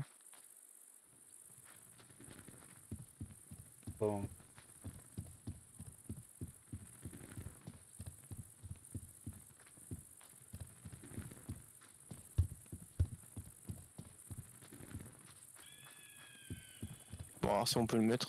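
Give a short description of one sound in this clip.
Footsteps tread steadily over ground and wooden boards.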